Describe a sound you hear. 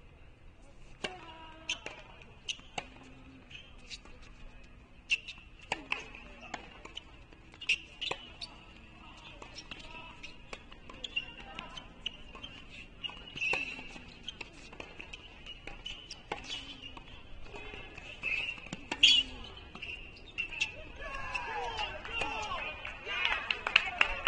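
Tennis balls are struck sharply with rackets, back and forth.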